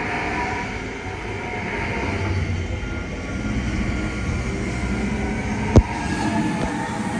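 A stationary train hums steadily.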